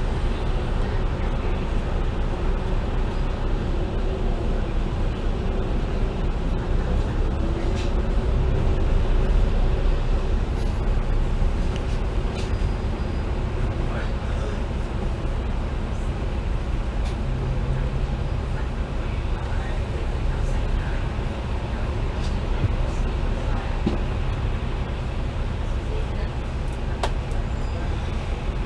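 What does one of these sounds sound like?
A diesel bus engine drones while driving along.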